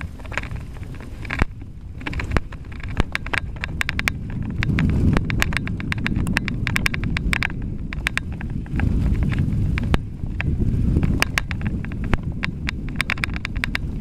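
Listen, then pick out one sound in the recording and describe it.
A bicycle rattles and clicks over the bumps.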